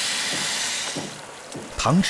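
Liquid bubbles in a pan.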